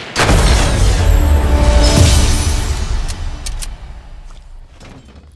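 A victory fanfare plays in a video game.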